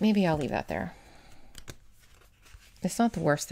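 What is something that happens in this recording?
Paper rustles and crinkles.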